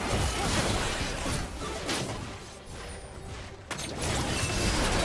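Magic spell effects whoosh and crackle in a game.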